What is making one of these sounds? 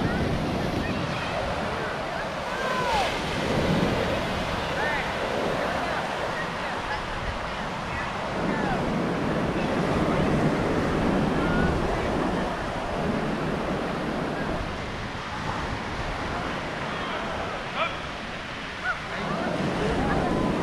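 Gentle waves wash onto the shore in a steady rush.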